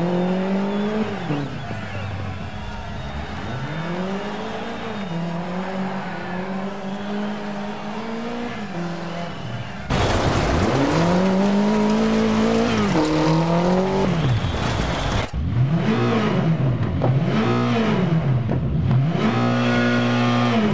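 A rally car engine roars, revving up and down as gears change.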